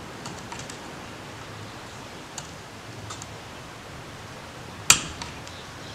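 A screwdriver scrapes and clicks on a metal carburetor.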